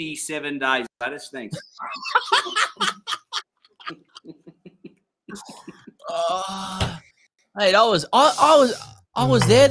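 Men talk and laugh animatedly into close microphones.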